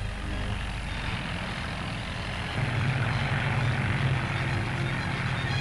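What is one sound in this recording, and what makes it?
A tractor engine chugs and rumbles steadily, getting louder partway through.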